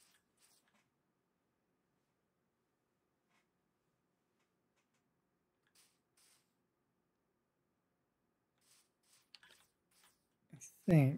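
Soft footsteps tread on grass in short, quiet bursts.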